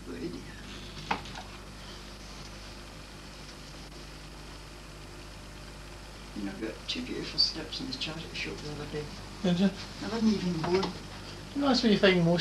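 Clothes hangers rattle on a rail.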